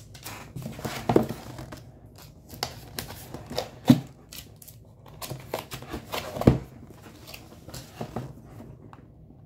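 Fingers tap and knock on a cardboard box.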